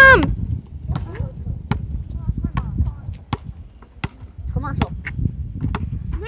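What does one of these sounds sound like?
A basketball bounces on hard pavement outdoors.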